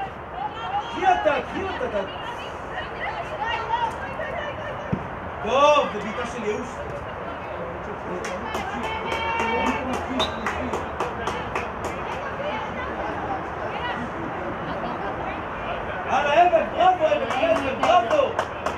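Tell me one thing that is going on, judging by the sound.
Young players shout and call to each other outdoors.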